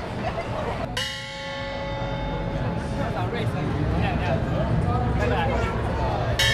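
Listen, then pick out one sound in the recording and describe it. A cymbal clashes and rings out.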